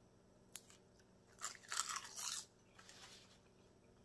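A woman slurps noodles.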